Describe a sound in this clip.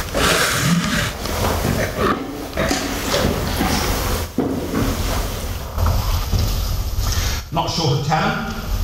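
A man speaks calmly and with animation, heard through a microphone in a large room.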